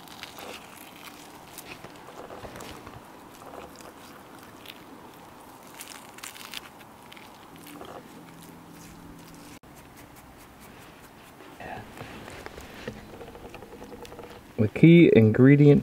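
Fingers pick and crackle at crisp grilled fish skin.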